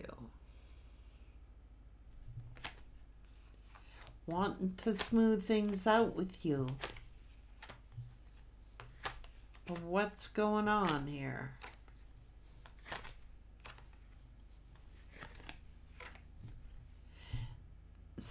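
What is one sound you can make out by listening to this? Cards tap and shuffle softly in a woman's hands.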